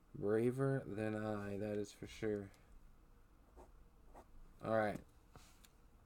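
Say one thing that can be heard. A young man speaks casually close to a microphone.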